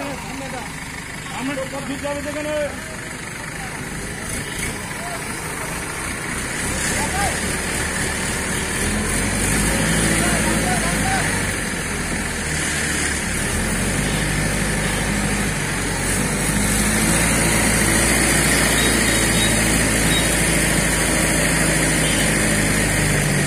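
A crane engine drones steadily.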